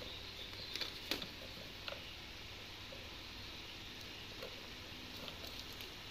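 Plastic light bulbs clatter and knock together.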